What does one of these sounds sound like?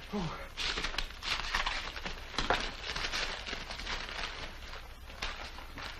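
Paper rustles as a parcel is wrapped.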